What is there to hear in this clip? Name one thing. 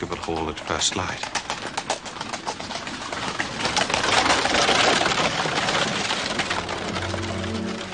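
Cart wheels rumble and crunch over gravel.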